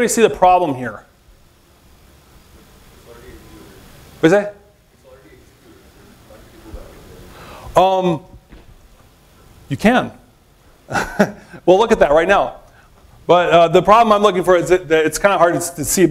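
A man speaks into a microphone in a talk, pausing now and then.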